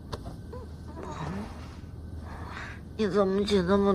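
Bedding rustles as someone sits up in bed.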